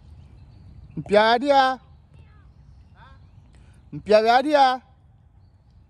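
A man shouts out loudly.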